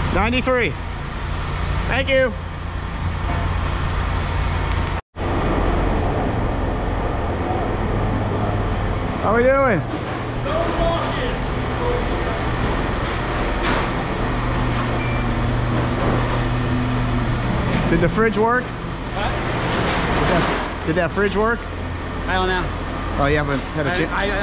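A man talks close by in a lively voice.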